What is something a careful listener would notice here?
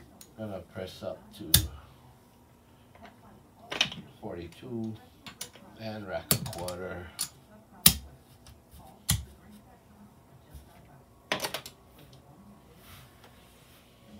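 Casino chips clack together as they are stacked and moved.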